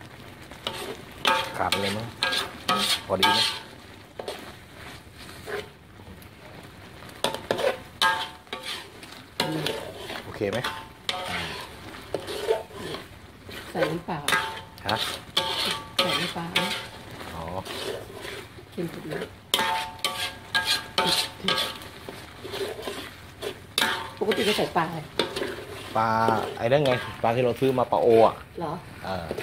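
A metal spatula scrapes and stirs against a wok.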